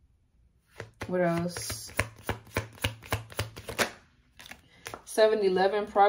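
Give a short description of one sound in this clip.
Playing cards tap and shuffle against each other and a table.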